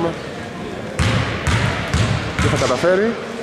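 A basketball thumps on the floor.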